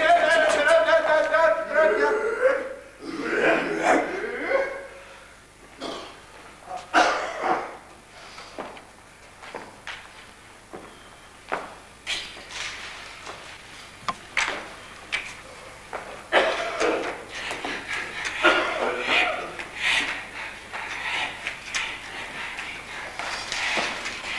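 A man's voice sings or calls out on a stage that echoes a little.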